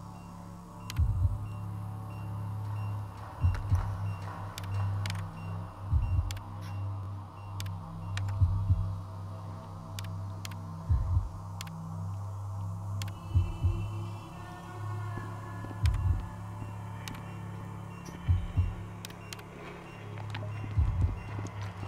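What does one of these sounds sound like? Soft clicks tap as keys are pressed.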